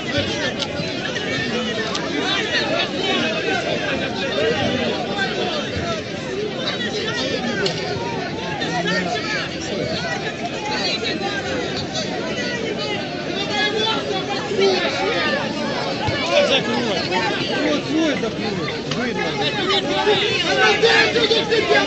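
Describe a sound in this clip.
A large crowd of men and women shouts and talks loudly outdoors.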